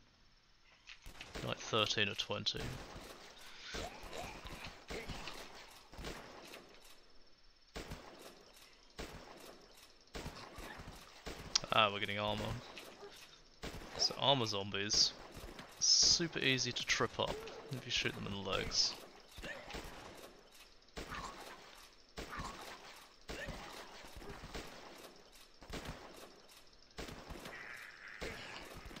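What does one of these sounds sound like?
Rapid gunshots crack again and again.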